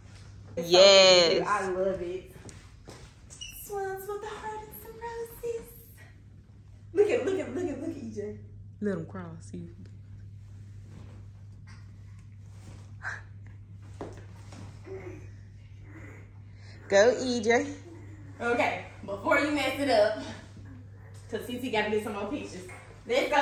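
A young woman talks close by in a lively, playful way.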